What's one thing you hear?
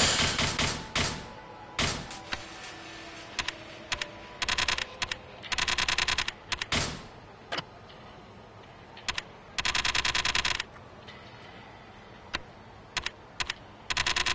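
Short electronic menu ticks and blips sound in quick bursts as options are scrolled.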